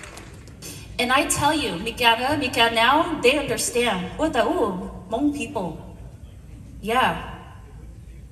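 A woman speaks with animation into a microphone over loudspeakers.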